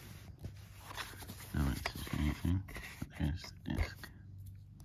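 A disc rattles and clicks in its case.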